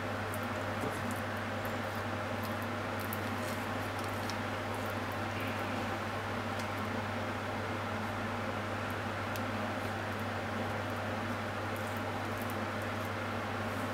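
A spoon scrapes and taps against a plastic dish.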